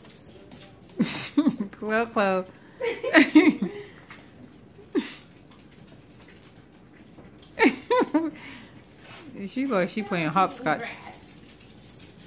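Small dogs yip and bark in short excited bursts.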